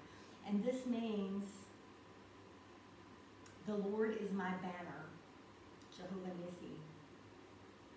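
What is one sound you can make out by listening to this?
A young woman speaks calmly and softly nearby, in short phrases with pauses.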